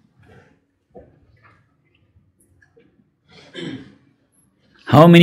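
An elderly man speaks calmly and close into a microphone, with pauses.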